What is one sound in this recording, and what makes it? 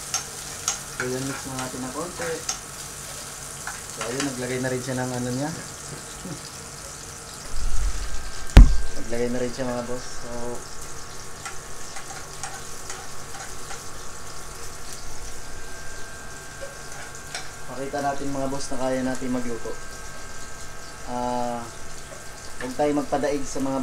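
A spoon scrapes and stirs food in a frying pan.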